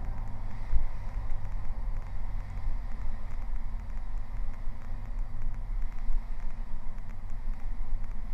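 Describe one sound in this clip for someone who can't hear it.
A small plane's engine drones steadily from inside the cabin.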